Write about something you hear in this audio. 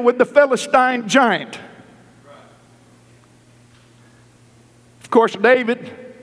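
A middle-aged man preaches with animation through a microphone in a large echoing hall.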